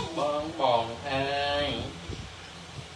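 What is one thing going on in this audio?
A young man speaks loudly and with animation, close by.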